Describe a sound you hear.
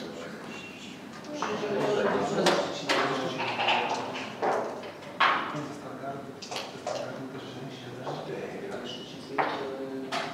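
Game pieces click and slide on a wooden board.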